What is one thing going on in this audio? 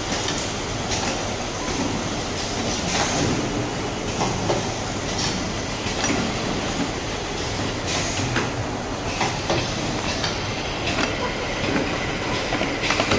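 A bottling machine hums and whirs steadily.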